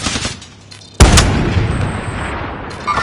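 A rifle fires a single loud, booming shot that rings out and fades.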